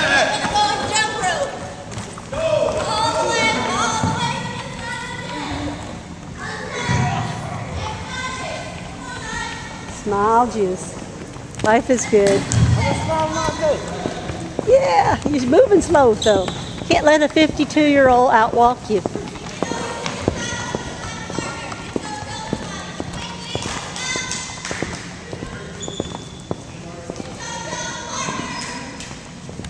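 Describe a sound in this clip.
Young men and women talk and call out in a large echoing hall.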